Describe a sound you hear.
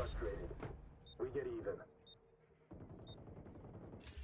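A short electronic beep sounds once each second during a countdown.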